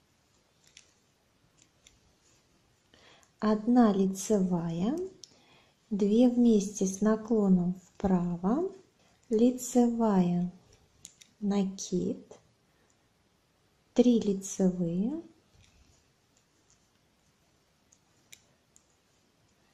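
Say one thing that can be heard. Metal knitting needles click softly.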